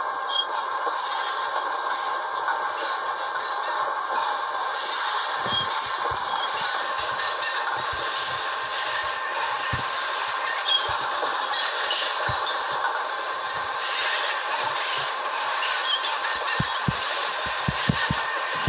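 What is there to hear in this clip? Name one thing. A diesel locomotive engine rumbles steadily as it picks up speed.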